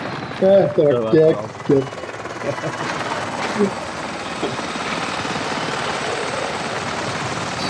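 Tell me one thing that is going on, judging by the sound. A helicopter's rotor thumps overhead in a steady drone.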